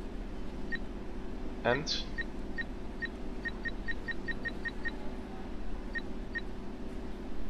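An electronic keypad beeps with short, high tones in quick succession.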